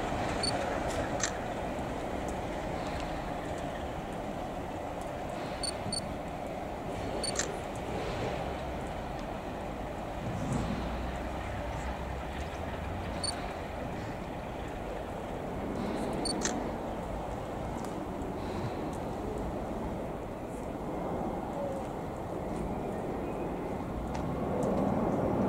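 A diesel locomotive engine rumbles steadily as a train approaches.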